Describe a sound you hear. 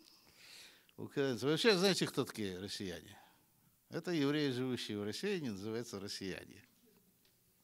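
An elderly man speaks with animation into a microphone, close by.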